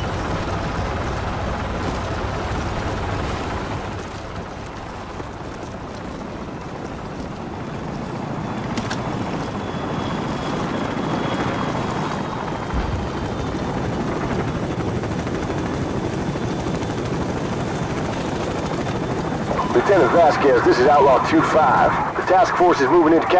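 Rifles fire in bursts amid a steady rumble of battle.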